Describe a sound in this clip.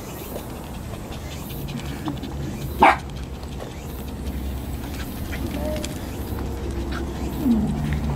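A small poodle pants with its mouth open.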